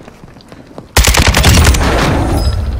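Rapid gunfire rattles loudly and close.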